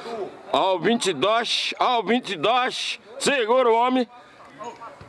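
A man talks loudly close by.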